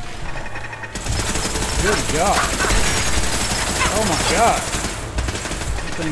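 Laser turrets fire rapid zapping shots.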